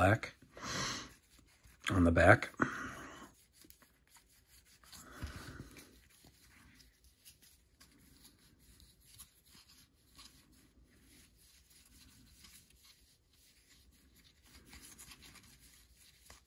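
Trading cards rustle and flick softly as they are shuffled by hand.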